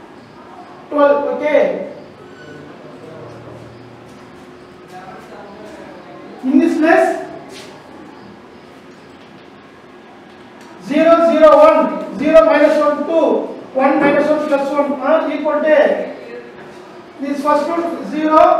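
A man speaks in a calm teaching manner, close by.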